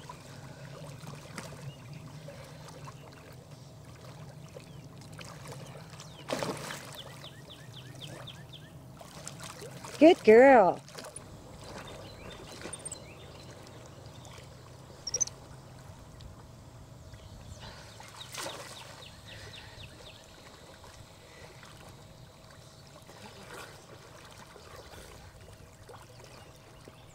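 Water splashes and laps softly as a swimmer moves through it.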